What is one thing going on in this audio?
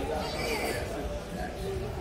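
Several people chat quietly in the background.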